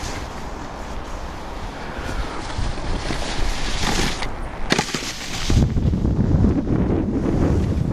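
A snowboard scrapes and hisses over packed snow, growing closer.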